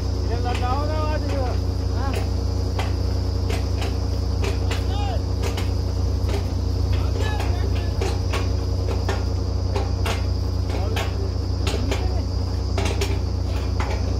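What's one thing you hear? Metal clanks and knocks on the drill rig.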